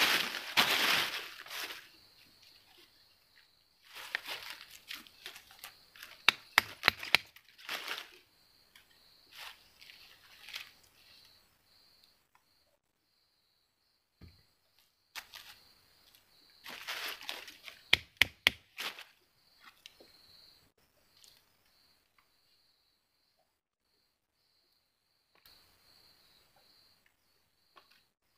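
Dry leaves rustle and crackle as a boy digs through them by hand.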